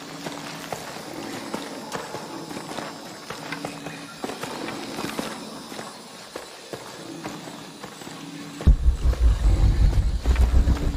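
Footsteps fall on forest ground.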